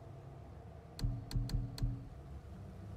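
Menu selections click softly a few times.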